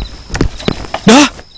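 A man cries out loudly in pain.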